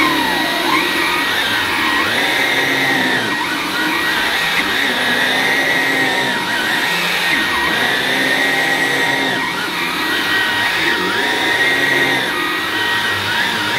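A vacuum cleaner head brushes back and forth over carpet.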